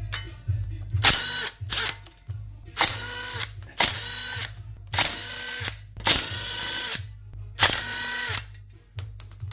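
A cordless impact driver whirs in repeated short bursts.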